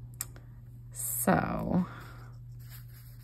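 A paper page rustles under a hand.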